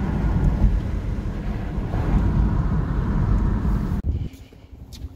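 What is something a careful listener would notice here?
A car hums and its tyres rumble on the road, heard from inside.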